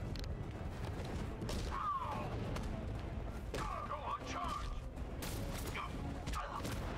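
Punches and thuds land in a brawl.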